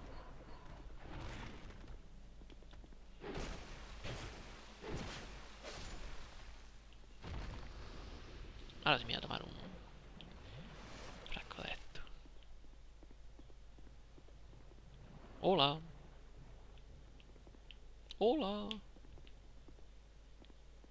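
Sword blows land with heavy thuds and whooshes.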